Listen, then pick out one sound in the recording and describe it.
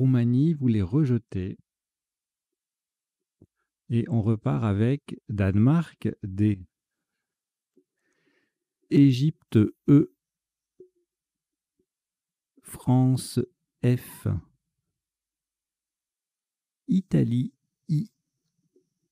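A man speaks calmly into a microphone in short bursts with pauses.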